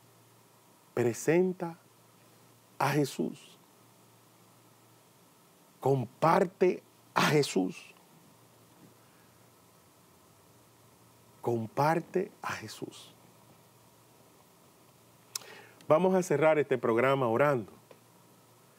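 A middle-aged man speaks with animation into a microphone, in short bursts with pauses.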